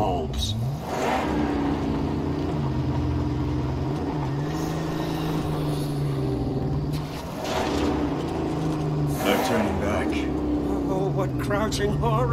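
A vehicle engine drones and revs up and down.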